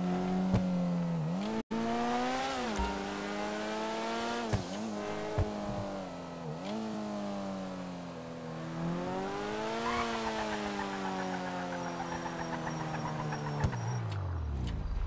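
A sports car engine revs up and down repeatedly.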